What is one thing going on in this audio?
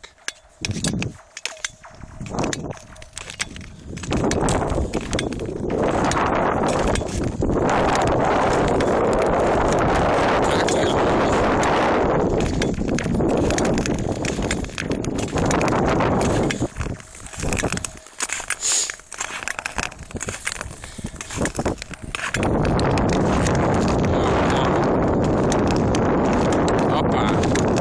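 Ice skates scrape and hiss across ice.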